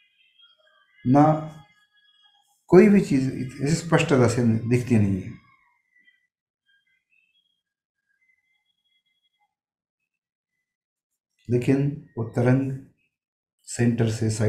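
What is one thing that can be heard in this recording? An older man speaks calmly and slowly, with long pauses, heard through a microphone.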